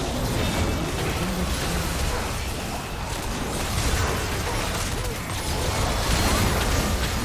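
Magic spells crackle and blast in a hectic fight.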